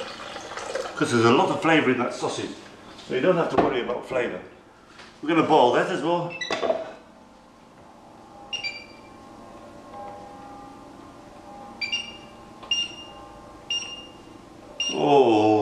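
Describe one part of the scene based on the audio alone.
A middle-aged man talks calmly and close by.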